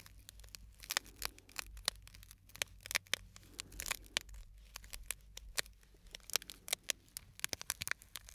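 Fingers crinkle and tap a small object close to a microphone.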